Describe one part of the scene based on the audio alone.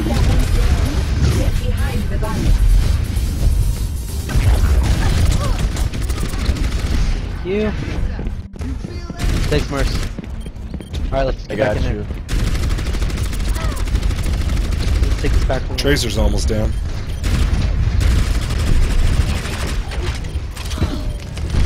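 A game gun fires rapid bursts.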